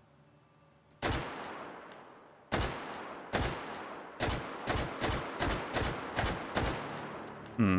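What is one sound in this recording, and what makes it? A gun fires single loud shots that echo away.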